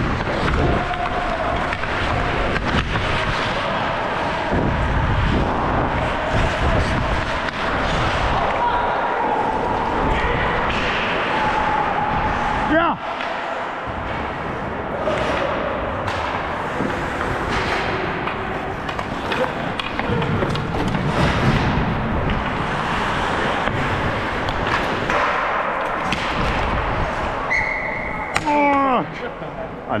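Ice skates scrape and carve across ice close by.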